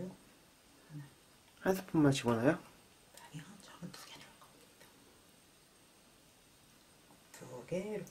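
A wooden spoon stirs liquid in a metal pot.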